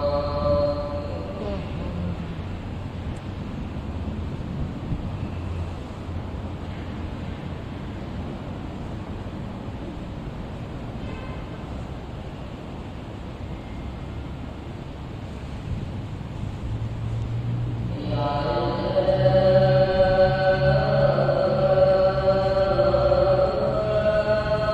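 Fans whir steadily.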